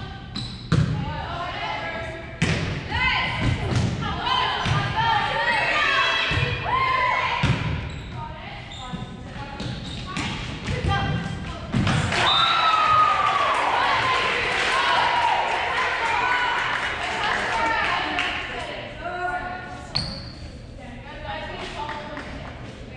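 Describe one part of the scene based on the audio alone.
Players shout and call out to each other in an echoing hall.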